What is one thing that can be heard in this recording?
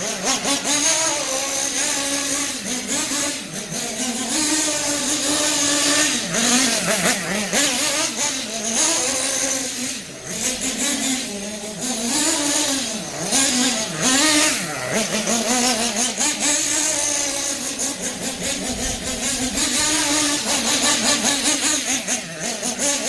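A nitro-powered radio-controlled buggy engine buzzes, its pitch rising and falling as it races around a lawn.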